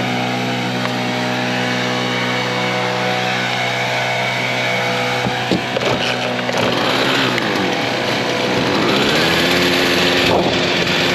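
A small two-stroke engine idles steadily close by.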